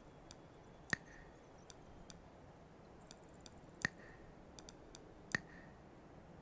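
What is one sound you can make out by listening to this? Sharp clicks sound as menu buttons are pressed.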